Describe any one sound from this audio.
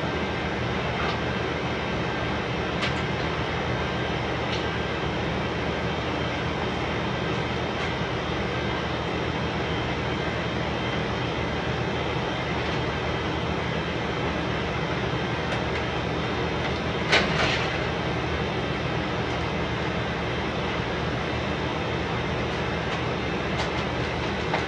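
A fluorescent light hums steadily.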